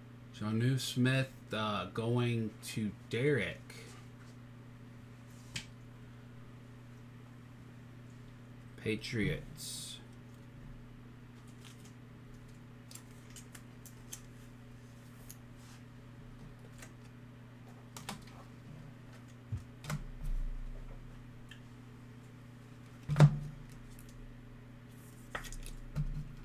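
Stiff cards click and rustle as they are handled.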